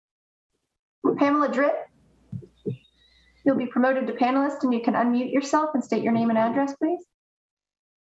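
A young woman speaks calmly over an online call.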